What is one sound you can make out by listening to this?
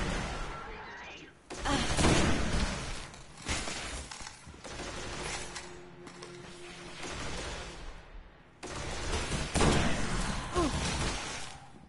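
Energy blasts crackle and burst.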